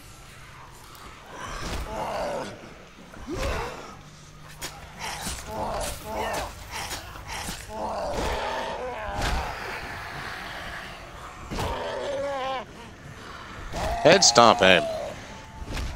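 Heavy blows thud and squelch wetly against bodies.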